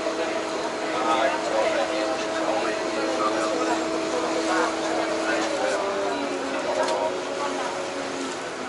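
Passengers chatter nearby.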